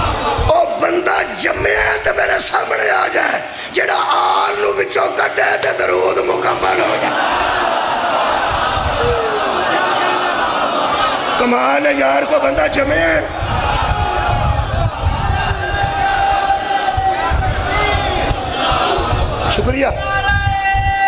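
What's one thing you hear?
A middle-aged man speaks passionately into a microphone through loudspeakers in an echoing hall.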